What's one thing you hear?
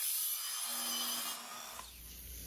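A power saw whines as its blade cuts through wood.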